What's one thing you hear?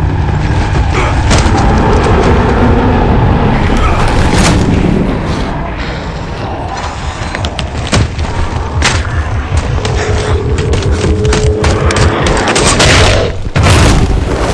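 A deep engine rumbles steadily.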